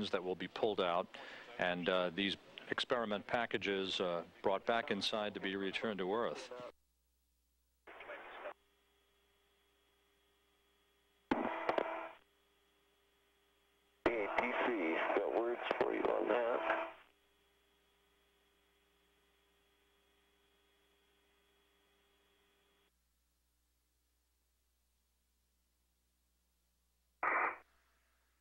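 A man talks calmly over a radio link, in short bursts.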